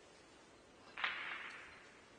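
A cue sharply strikes a snooker ball.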